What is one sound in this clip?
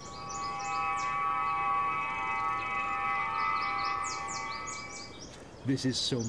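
A shimmering electronic hum rings steadily, then fades away.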